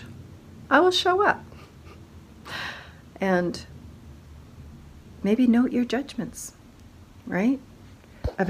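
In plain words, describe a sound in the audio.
A middle-aged woman speaks close up in short, animated bursts.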